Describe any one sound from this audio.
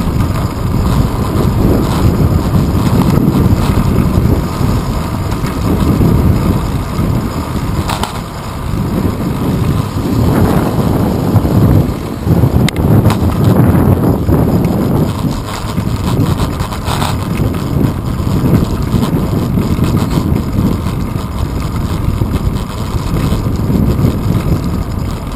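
Wind rushes loudly past the rider, low and steady throughout.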